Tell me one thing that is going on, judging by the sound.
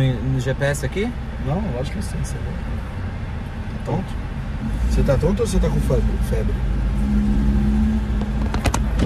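A young man talks casually into a nearby phone microphone.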